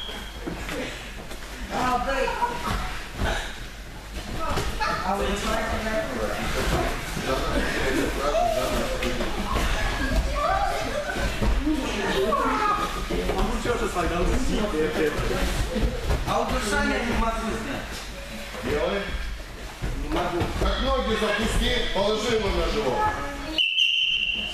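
Bodies thump and slide on padded mats as boys wrestle.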